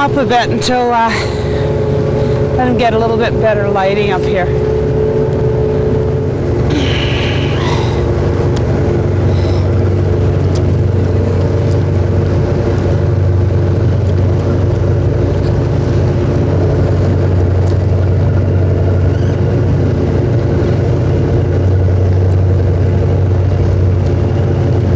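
A motorboat engine drones steadily.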